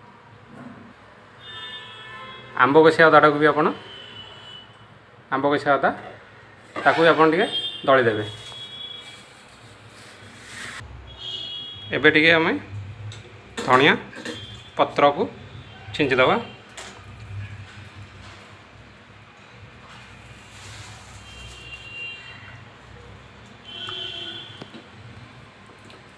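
A hand squishes and mashes wet rice in a metal pot.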